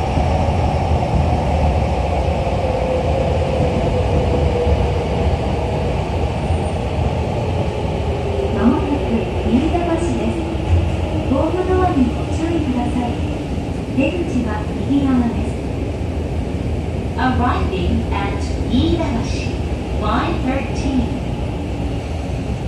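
A subway train rumbles and rattles steadily along the track.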